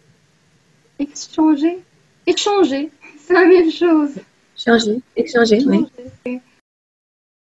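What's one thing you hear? A woman speaks cheerfully over an online call.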